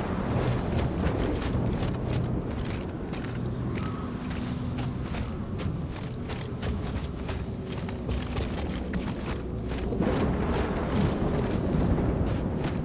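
Heavy boots crunch through snow in quick steps.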